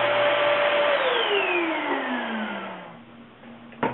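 A band saw motor winds down and stops.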